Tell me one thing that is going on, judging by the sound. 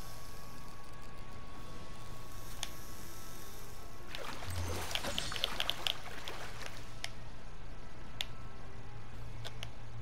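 A fishing reel whirs as line is reeled in.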